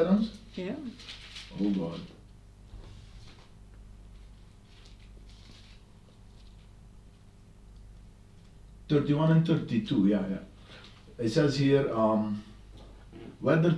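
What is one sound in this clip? A man reads out calmly into a microphone, with long pauses.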